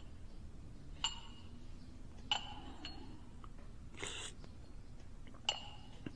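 A porcelain teacup clinks lightly several times.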